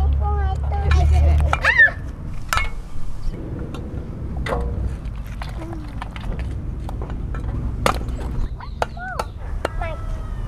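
A cleaver chops sharply on a wooden block.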